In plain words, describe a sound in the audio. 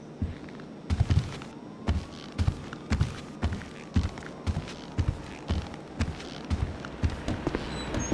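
Footsteps walk at an even pace on a hard floor.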